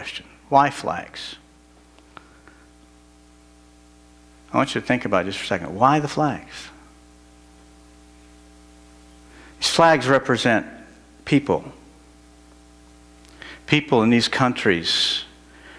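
A middle-aged man speaks steadily through a microphone, in bursts with pauses.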